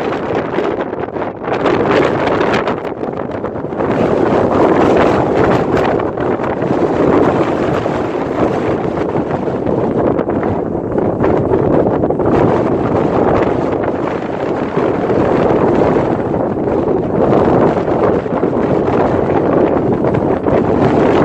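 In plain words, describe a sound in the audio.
Wind blows hard and gusty across open ground.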